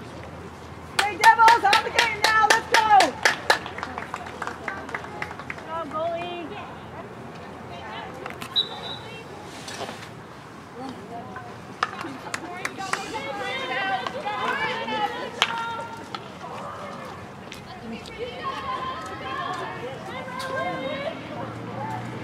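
Young women call out to each other across an outdoor pitch.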